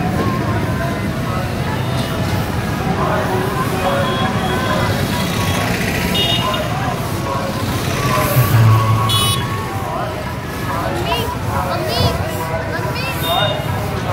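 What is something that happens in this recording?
Brooms sweep and scrape along a road surface.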